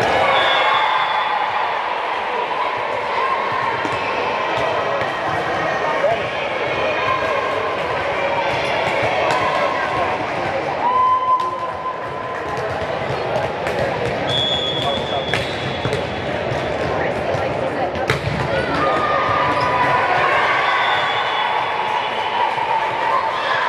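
A crowd of girls chatters and calls out across the echoing hall.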